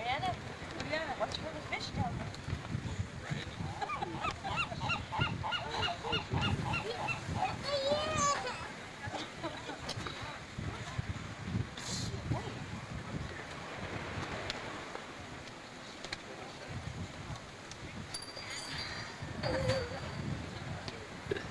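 A young girl babbles and sings in a high voice close by.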